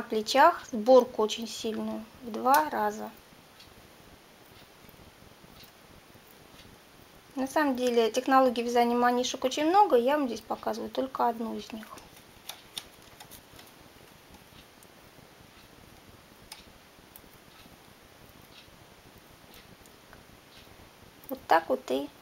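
A metal hook clicks softly against the needles of a knitting machine.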